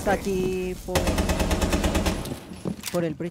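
Rapid gunfire bursts from an automatic rifle.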